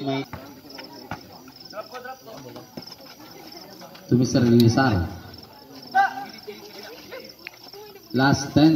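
Spectators and players shout loudly outdoors.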